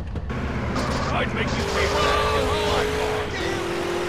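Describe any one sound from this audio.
Music plays from a car radio.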